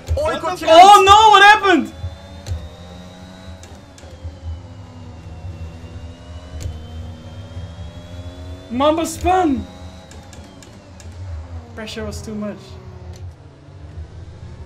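A racing car engine whines and hums steadily, rising and falling in pitch.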